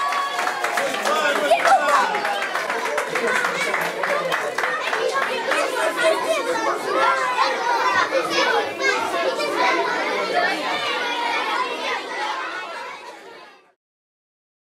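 A large crowd of children chatters and shouts loudly.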